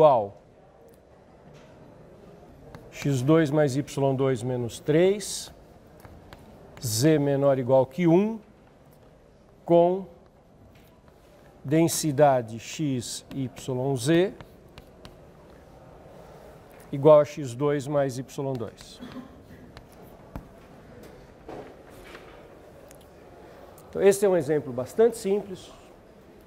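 A middle-aged man speaks calmly in bursts, lecturing.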